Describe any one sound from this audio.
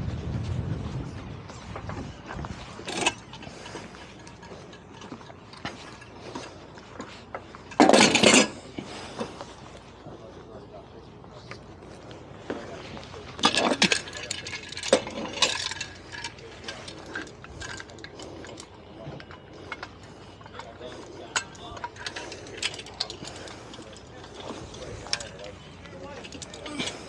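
A man talks from a short distance outdoors.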